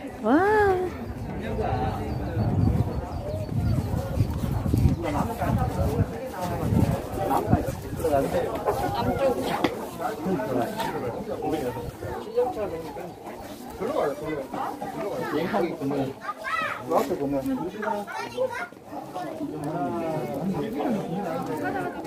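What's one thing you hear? Young men and women talk casually nearby outdoors.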